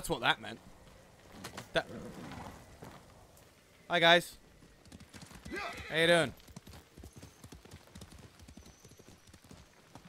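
Horse hooves thud on the ground.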